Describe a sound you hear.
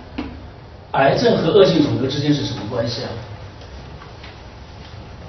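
A man speaks to a room, heard through a microphone.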